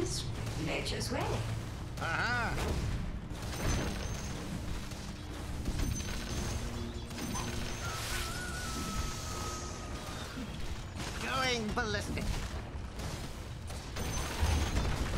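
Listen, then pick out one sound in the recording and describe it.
Magic spells whoosh and crackle in a fantasy game.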